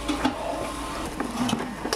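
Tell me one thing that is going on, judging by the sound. A metal lid clanks against a pot.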